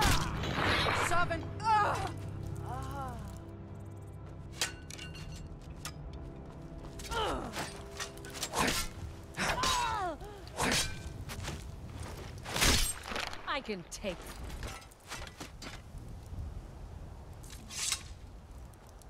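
Steel swords clash and strike in a fight.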